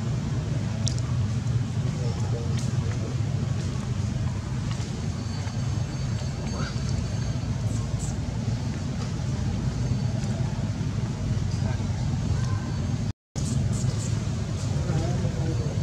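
Dry sticks creak and tap as a small monkey climbs over them.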